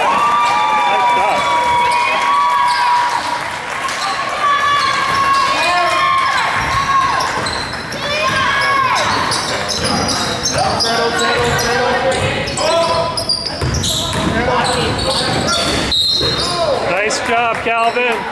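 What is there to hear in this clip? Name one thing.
A basketball bounces on a hardwood floor in an echoing gym.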